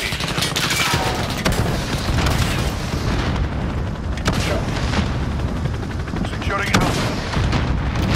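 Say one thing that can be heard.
Loud explosions boom in quick succession.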